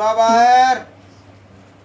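A young woman cries out loudly close by.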